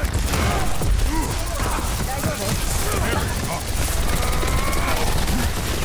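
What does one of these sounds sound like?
An electric gun crackles and zaps as it fires in rapid bursts.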